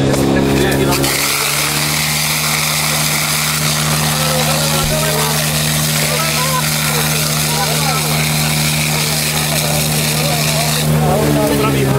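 Water jets hiss and spray from hose nozzles.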